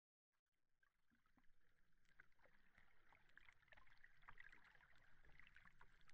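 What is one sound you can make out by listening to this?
A whale clicks and chirps underwater.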